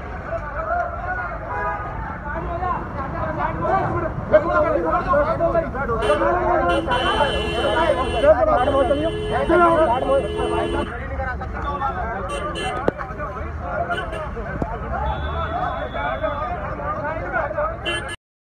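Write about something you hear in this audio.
Several men shout and argue angrily close by.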